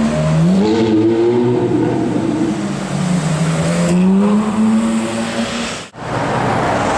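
A sports car engine revs and roars as the car pulls away.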